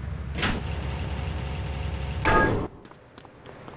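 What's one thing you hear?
A metal garage door rattles shut.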